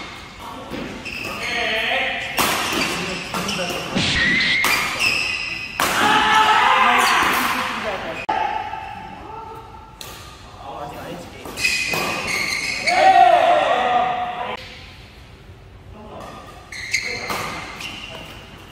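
A shuttlecock is struck sharply with rackets again and again.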